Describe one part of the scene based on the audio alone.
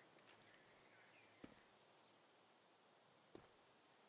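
Bullets smack into a plaster wall.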